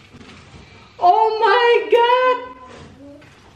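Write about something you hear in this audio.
A woman exclaims loudly in surprise.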